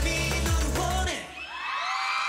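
A young man sings through a headset microphone.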